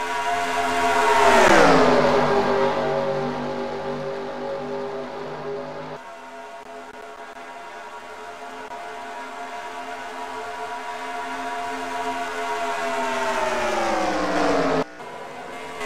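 A race car engine roars past, dropping sharply in pitch as it goes by.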